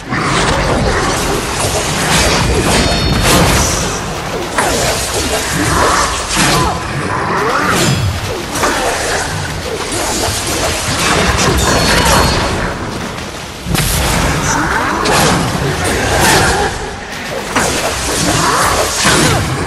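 A monster roars and screeches.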